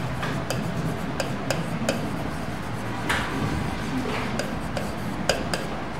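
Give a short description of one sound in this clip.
A pen taps and clicks against a hard board.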